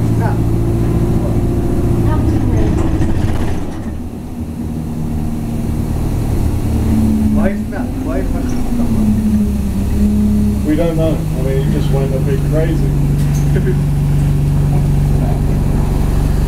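A vehicle engine hums steadily while driving along.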